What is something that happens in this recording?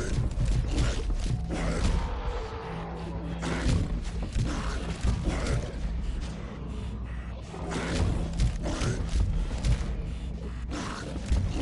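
Heavy blows thud against bodies.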